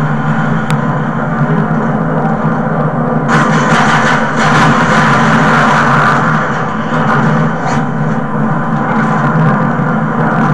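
A low steady hum drones from a television.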